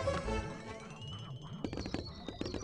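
A cheerful video game jingle plays with a rising tone.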